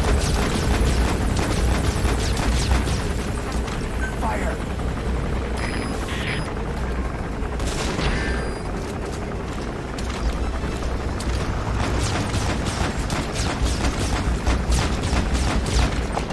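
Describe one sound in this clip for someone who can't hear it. A helicopter's rotor thumps overhead with a steady low drone.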